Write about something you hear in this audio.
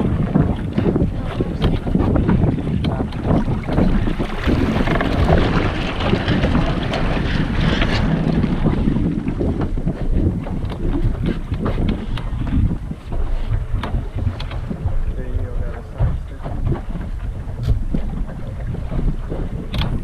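A sail flaps and rustles in the wind.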